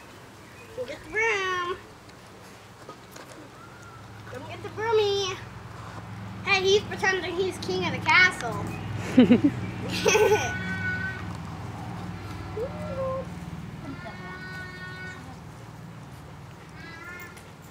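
Bernese Mountain Dog puppies whine and yip.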